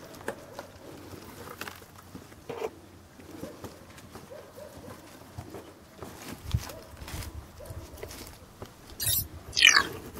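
Cloth rustles as hands fold and unwrap it.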